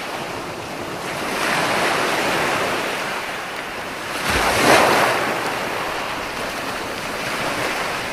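Ocean waves break and wash up onto a beach in rolling surges.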